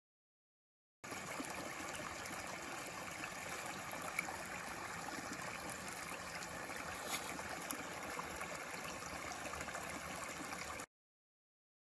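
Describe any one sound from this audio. A shallow stream babbles and trickles over rocks close by.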